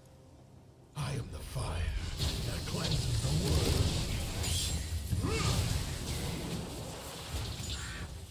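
Spell blasts and hits burst in a noisy video game fight.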